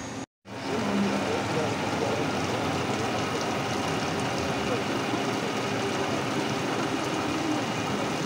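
A milling machine cuts metal with a steady whir.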